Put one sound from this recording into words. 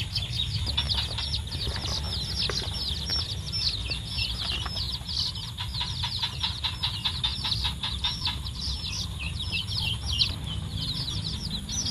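Many chicks peep loudly and continuously.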